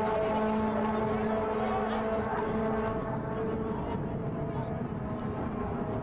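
Rugby players shout to each other across an open field.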